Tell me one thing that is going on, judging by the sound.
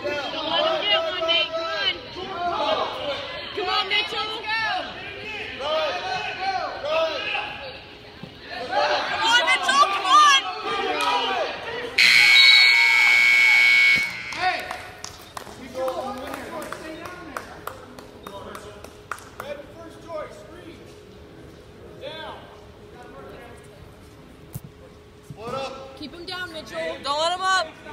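Several people shout encouragement loudly nearby in a large echoing hall.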